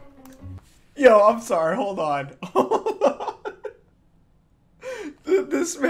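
A young man laughs heartily into a microphone.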